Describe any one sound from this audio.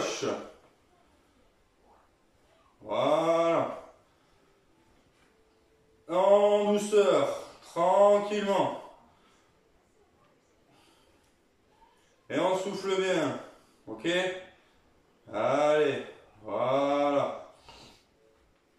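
A young man speaks calmly and clearly, close by, in short phrases with pauses.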